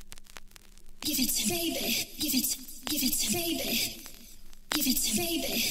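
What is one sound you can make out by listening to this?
Music plays from a vinyl record.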